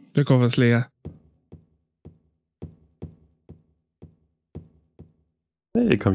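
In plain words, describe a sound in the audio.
Footsteps thud slowly and evenly on a hard floor.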